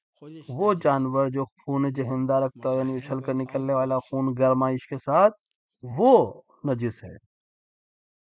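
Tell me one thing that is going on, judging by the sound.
An elderly man speaks slowly through a microphone.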